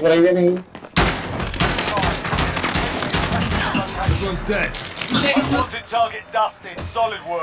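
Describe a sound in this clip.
Gunshots fire in rapid bursts, close by.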